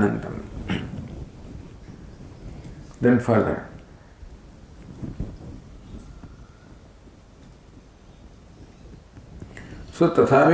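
An elderly man speaks calmly into a microphone, in bursts with pauses.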